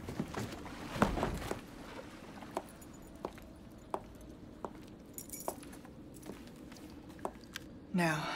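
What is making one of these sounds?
Boot heels click on a hard floor.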